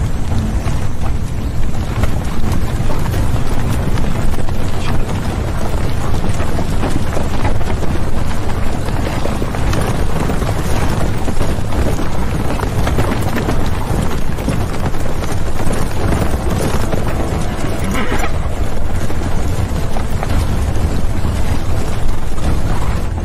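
Many horses gallop, hooves pounding on the ground.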